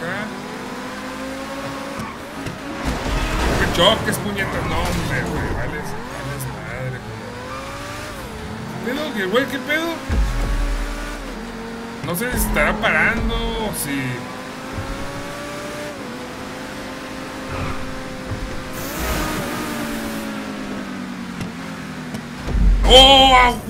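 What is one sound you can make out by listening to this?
A car engine revs and roars steadily, rising and falling in pitch.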